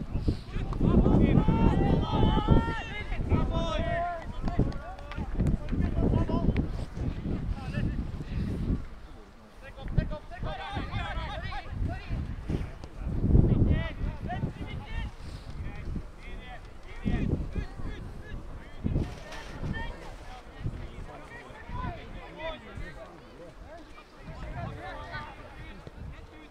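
Football players shout to each other in the distance.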